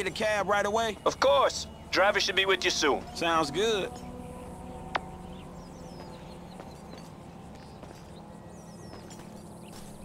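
Footsteps tap on a paved road.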